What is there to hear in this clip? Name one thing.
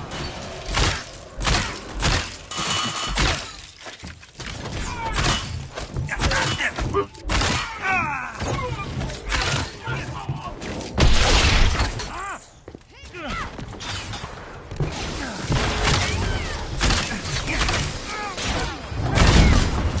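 Arrows whoosh from a bow.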